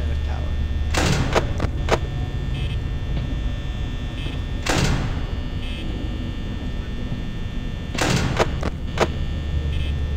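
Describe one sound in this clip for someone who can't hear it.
A heavy metal door slams shut with a loud clang.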